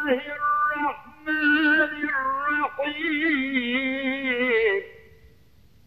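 An elderly man chants melodically through a microphone.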